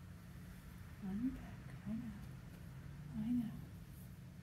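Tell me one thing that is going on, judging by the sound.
An older woman coos softly in short, drawn-out sounds close by.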